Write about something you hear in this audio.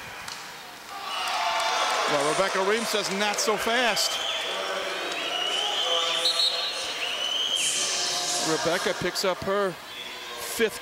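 A large crowd cheers and claps in an echoing hall.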